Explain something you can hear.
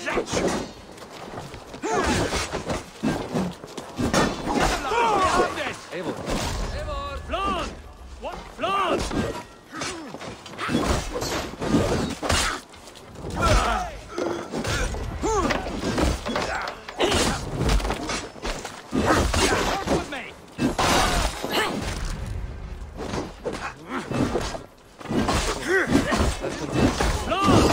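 Men shout and grunt in battle.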